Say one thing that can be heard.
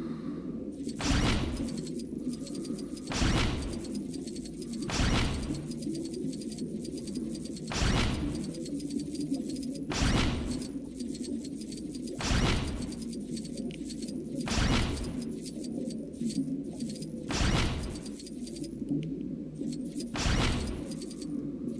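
A whooshing chime sounds each time a sea creature swims through a ring.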